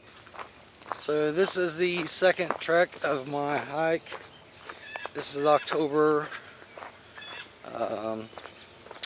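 A middle-aged man speaks calmly, close to a microphone.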